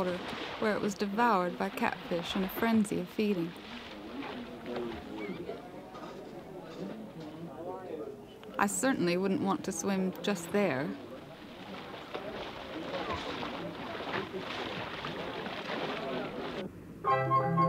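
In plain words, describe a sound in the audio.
Water splashes and churns as fish thrash at the surface.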